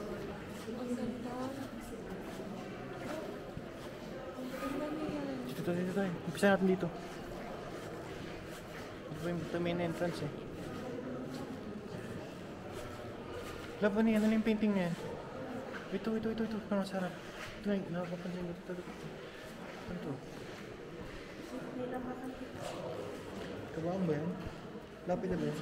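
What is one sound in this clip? A young woman speaks calmly and softly nearby.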